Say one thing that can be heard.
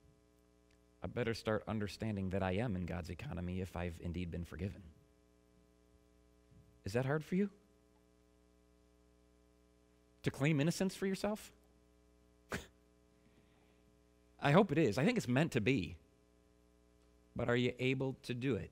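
A man speaks calmly into a microphone, in bursts with pauses.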